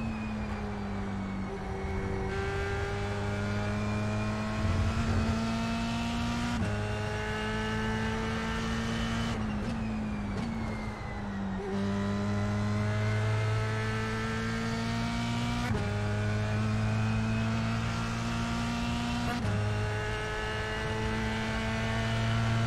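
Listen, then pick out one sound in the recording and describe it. A racing car engine roars and rises in pitch through the gears.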